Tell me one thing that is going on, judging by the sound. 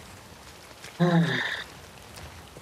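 A young man exclaims briefly into a microphone.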